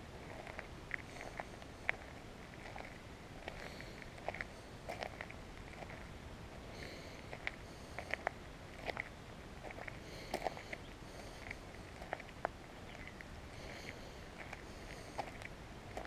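Footsteps crunch steadily on a gravel path outdoors.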